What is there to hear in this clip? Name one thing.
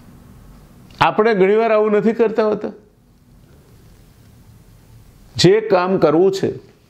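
A middle-aged man speaks calmly, close to a microphone.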